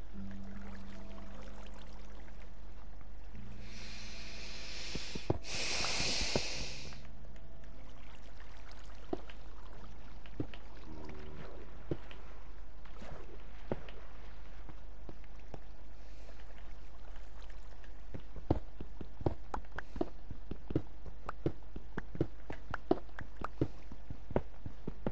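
Water flows and trickles steadily.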